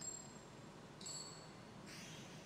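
A game chime rings as a coin spins.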